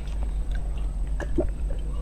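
A young woman gulps water from a glass.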